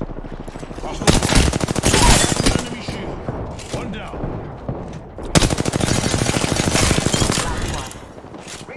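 Rapid gunfire rattles loudly in short bursts.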